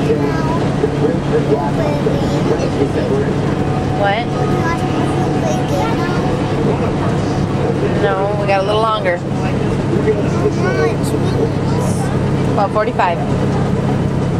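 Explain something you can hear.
A young boy talks close by in a high voice.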